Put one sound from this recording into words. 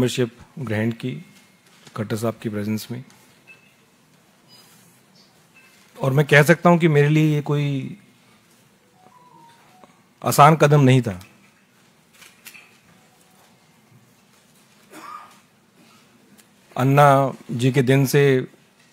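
A middle-aged man speaks calmly into a microphone, with pauses.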